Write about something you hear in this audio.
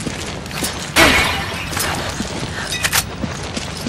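A clay pot smashes.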